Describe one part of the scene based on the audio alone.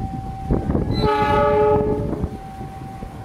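A train horn blasts loudly.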